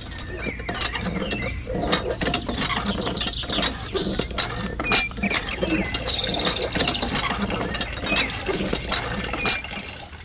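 A small hand pump clicks and squeaks as its handle is worked.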